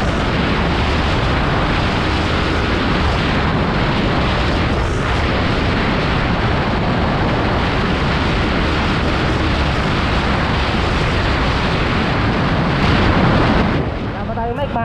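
Wind roars loudly against a microphone on a fast-moving motorcycle.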